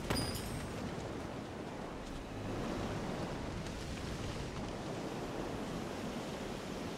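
Footsteps tread on grass and dirt.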